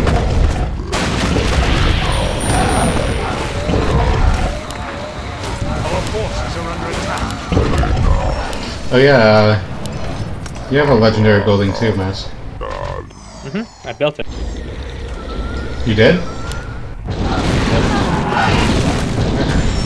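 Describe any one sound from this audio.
Magic spells crackle and whoosh in a game battle.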